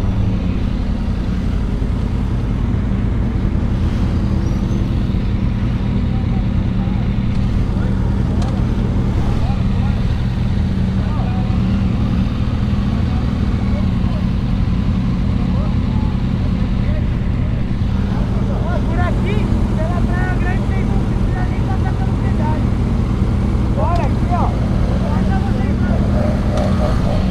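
Motorcycle engines idle with a deep, steady rumble.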